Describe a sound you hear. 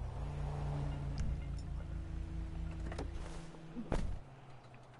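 A car engine idles with a low rumble, then cuts off.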